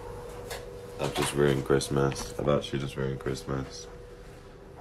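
A young man talks close to the microphone.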